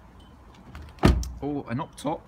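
A car door shuts with a heavy thud.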